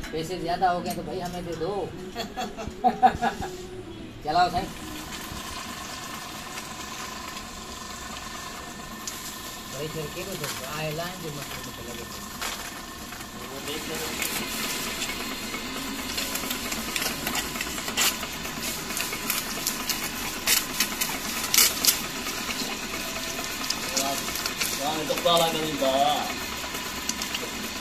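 An electric pump motor hums steadily.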